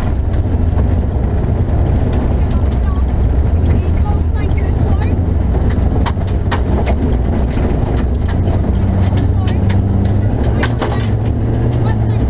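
Gravel and stones clatter against the car's underside.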